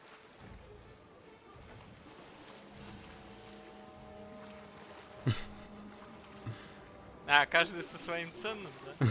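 Ocean waves slosh and roll.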